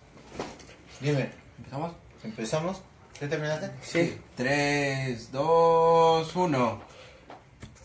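A young man speaks close into a microphone, drawing out some words in a sung tone.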